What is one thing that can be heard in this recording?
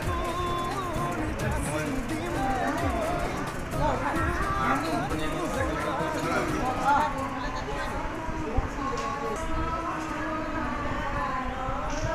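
Several women chat and murmur nearby.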